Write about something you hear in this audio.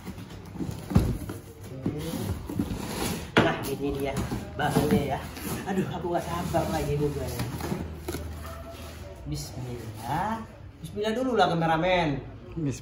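Cardboard flaps rustle and thump as they are pulled open.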